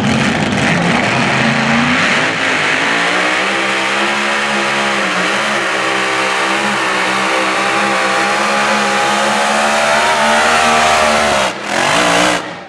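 A pulling tractor's engine roars loudly and climbs in pitch.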